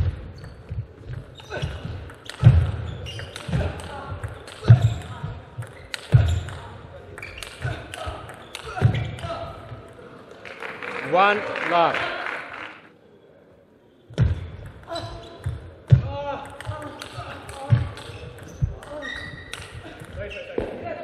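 A table tennis ball clicks sharply back and forth off paddles and the table.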